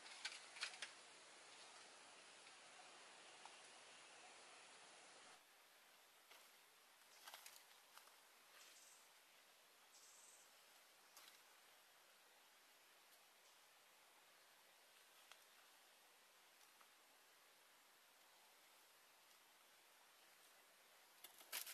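Dry leaves rustle on the forest floor.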